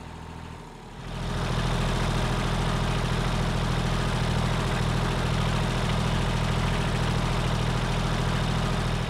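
A tractor engine rumbles loudly up close.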